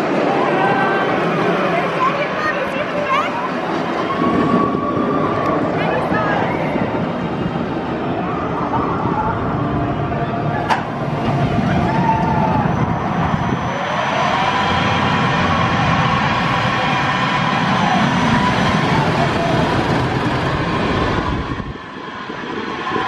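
Riders on a roller coaster scream and shout.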